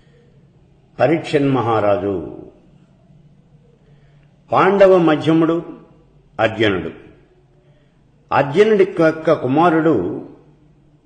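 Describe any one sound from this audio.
An elderly man speaks calmly and closely into a microphone, in short phrases with pauses.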